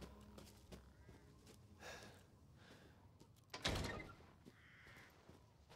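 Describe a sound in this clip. Footsteps crunch slowly on snow.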